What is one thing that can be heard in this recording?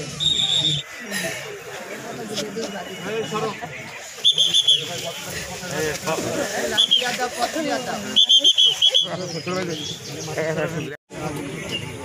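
A woman wails and sobs loudly nearby.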